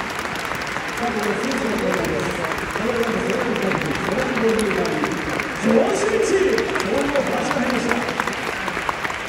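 A large crowd chants loudly in unison.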